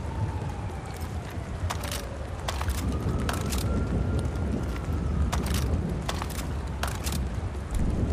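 Metal gear clicks and rattles sharply as ammunition is picked up.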